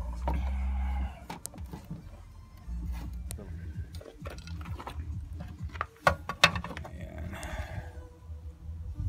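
Plastic parts click and rattle as they are handled close by.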